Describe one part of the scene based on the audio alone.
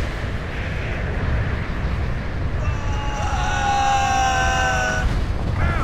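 Wind rushes loudly past a man falling through the air.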